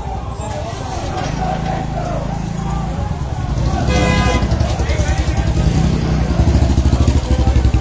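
A crowd of men shout and talk outdoors.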